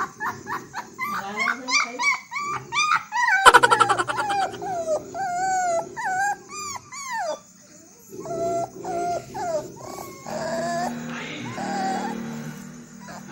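A puppy whines and whimpers.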